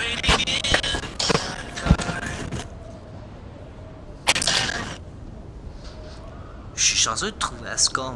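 A young man talks with animation into a microphone, close by.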